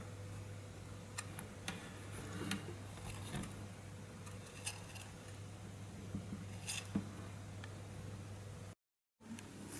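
A small hamster scratches and scrabbles softly on wood.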